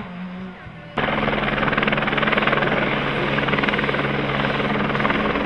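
A rally car engine drones steadily.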